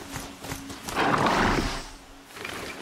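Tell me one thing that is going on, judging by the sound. A loud whooshing thump sounds as a rider jumps down.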